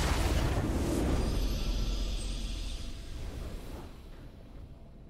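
A triumphant game fanfare swells and fades away.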